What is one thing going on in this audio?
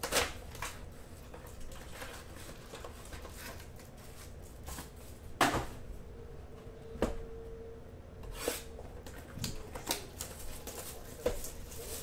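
Cardboard packs and a box knock and thud as they are handled.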